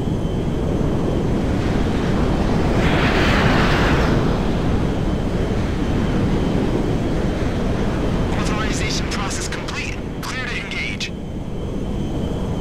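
Wind rushes past an airplane in flight.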